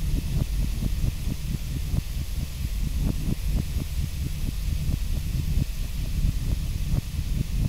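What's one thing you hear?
Footsteps crunch steadily on a dirt path.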